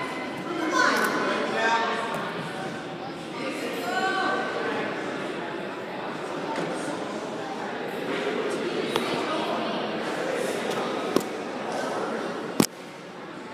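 Thick fabric rustles as two grapplers grip and pull at each other.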